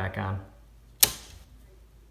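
A circuit breaker switch clicks once.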